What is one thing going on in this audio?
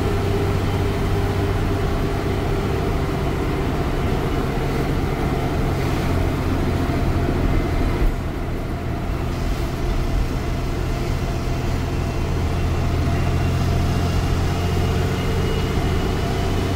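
A bus engine drones steadily from inside the cab.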